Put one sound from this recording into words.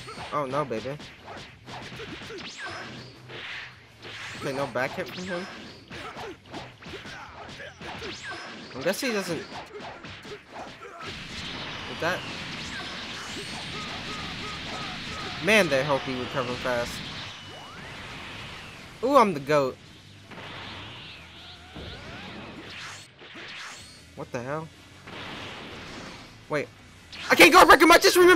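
Game characters shout and grunt with effort.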